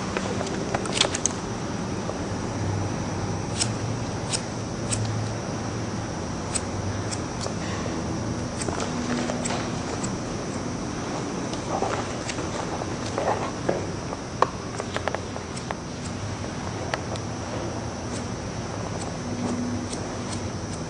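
Scissors snip through hair in short, crisp cuts.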